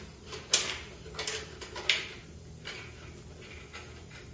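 A spray gun hisses in short bursts.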